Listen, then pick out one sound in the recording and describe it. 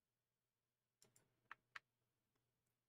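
Short electronic menu blips sound as a selection moves.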